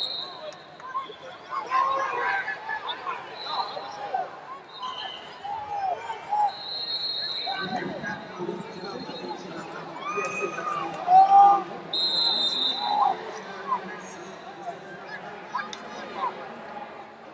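Men shout loudly from nearby.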